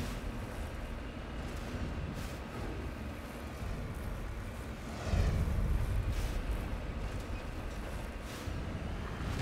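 A vehicle engine rumbles low and steadily as it drives over rough ground.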